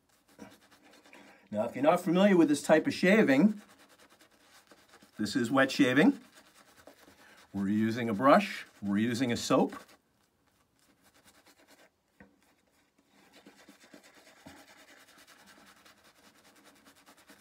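A shaving brush swishes and lathers against a man's face.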